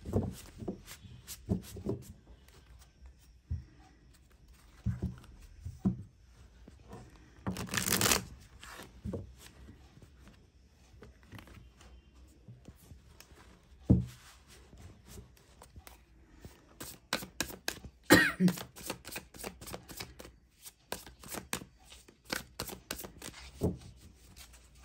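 A deck of cards is shuffled by hand, with soft riffling and tapping.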